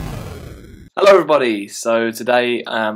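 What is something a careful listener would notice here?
A young man speaks casually and close up.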